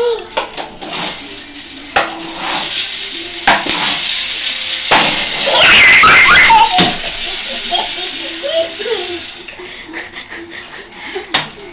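Young children chatter and babble close by.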